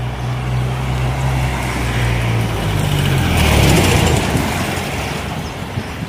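A car rushes past close by.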